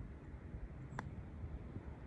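A golf putter taps a ball with a sharp click.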